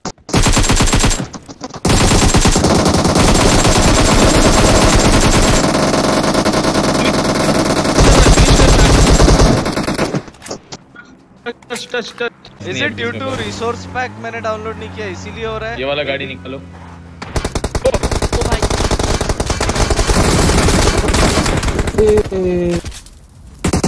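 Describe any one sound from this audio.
Gunshots fire in rapid bursts in a video game.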